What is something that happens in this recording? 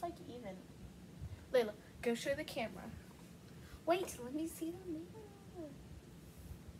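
Young girls talk and giggle close by.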